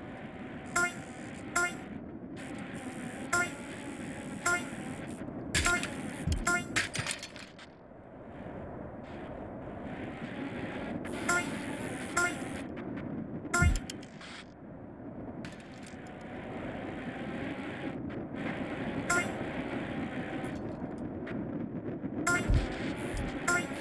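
Bicycle tyres roll and rattle over dirt and wooden planks.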